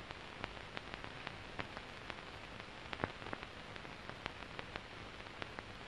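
Footsteps tap softly across a floor.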